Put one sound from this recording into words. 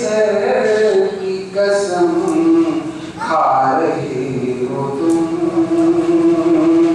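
A middle-aged woman speaks steadily into a microphone, heard through a loudspeaker.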